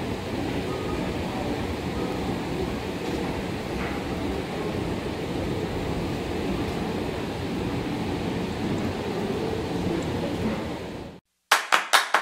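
A moving walkway rumbles steadily.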